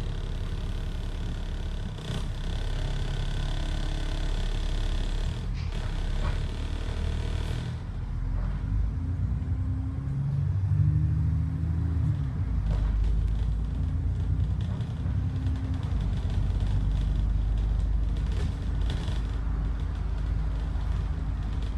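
Traffic passes by on the road outside.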